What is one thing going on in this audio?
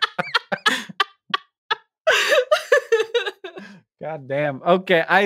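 A man laughs loudly over a microphone in an online call.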